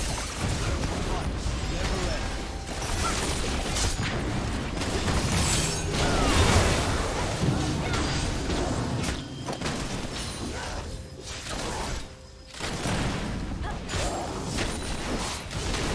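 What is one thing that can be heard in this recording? Spell blasts and weapon hits from a video game battle crash and whoosh rapidly.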